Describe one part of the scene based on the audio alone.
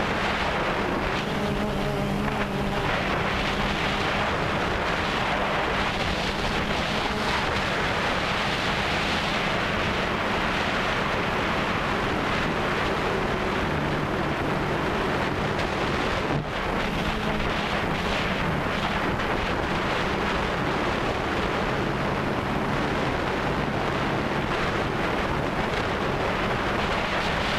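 Drone rotors buzz steadily close by.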